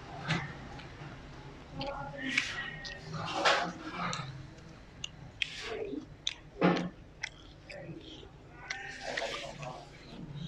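A young man chews food noisily up close.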